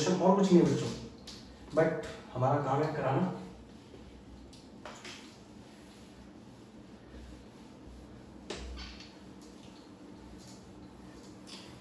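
A cloth rubs and squeaks across a whiteboard.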